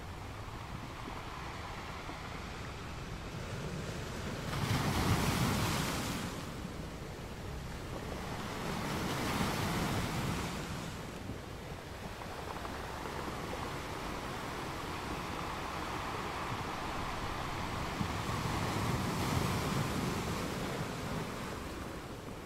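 Ocean waves crash and roar in repeated surges.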